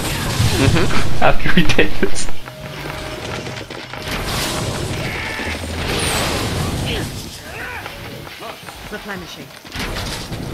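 Weapons clash and magic bursts crackle in a noisy fight.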